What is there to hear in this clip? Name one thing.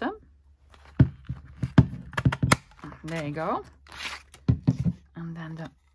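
A paper punch snaps down through card.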